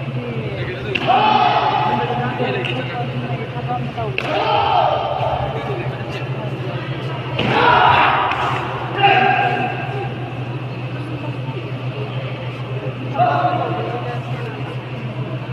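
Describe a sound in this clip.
A crowd of spectators shouts and cheers in bursts in a large echoing hall.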